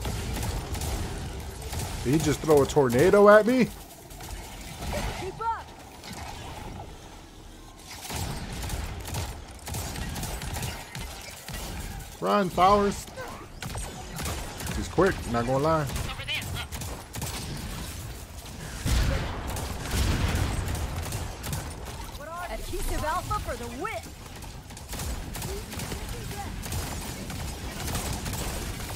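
Gunfire and blasts crackle from a video game.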